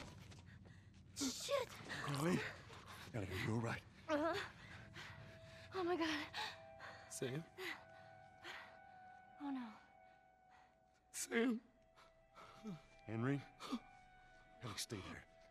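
A man speaks softly and anxiously close by.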